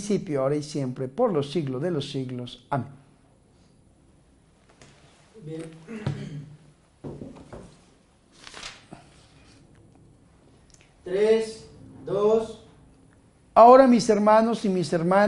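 A man speaks calmly and clearly, close to a microphone.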